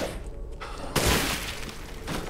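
A gunshot fires with a loud bang.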